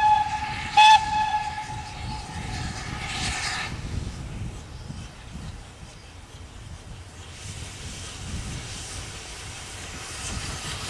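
A steam train chugs steadily in the distance, slowly coming closer.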